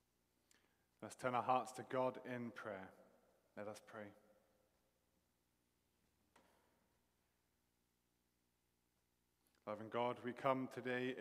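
A middle-aged man speaks calmly in an echoing hall, pausing between phrases.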